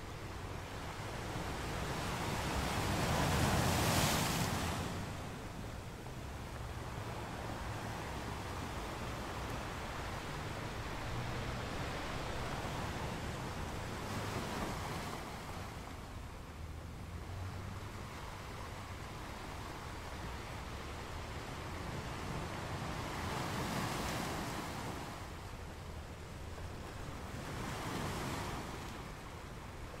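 Ocean waves crash and roar against rocks, swelling and fading in slow surges.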